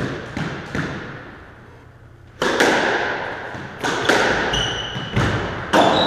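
A squash ball smacks against the walls with sharp echoing bangs.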